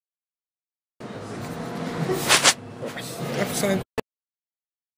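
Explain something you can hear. A man talks close by.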